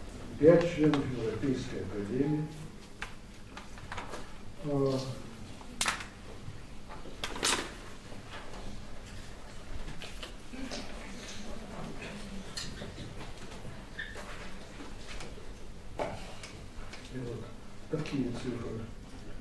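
An elderly man speaks calmly in a hall with a slight echo.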